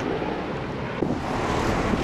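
Flames crackle in dry brush.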